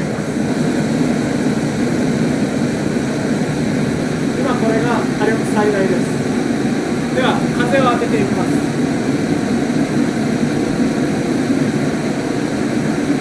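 A gas stove burner roars steadily.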